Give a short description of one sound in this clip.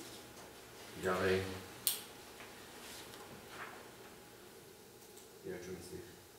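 A man speaks calmly in a quiet room.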